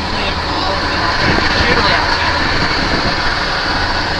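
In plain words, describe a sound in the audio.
A truck engine rumbles as the truck pulls away.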